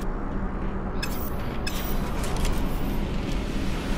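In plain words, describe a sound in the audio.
A creature clucks and chirps.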